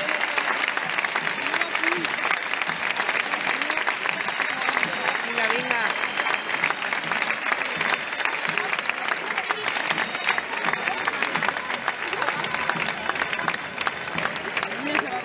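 A crowd murmurs and calls out.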